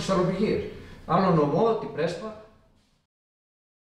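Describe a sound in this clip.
A middle-aged man speaks calmly into a microphone close by.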